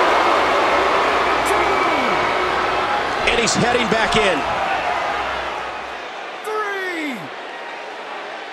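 A large crowd cheers and murmurs in a big echoing arena.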